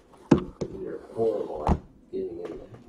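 Plastic case latches click open.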